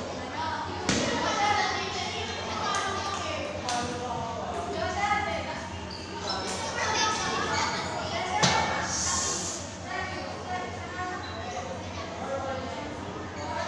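Teenage boys talk and call out nearby in a room with some echo.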